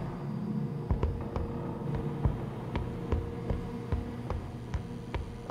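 Footsteps thud steadily on a metal floor.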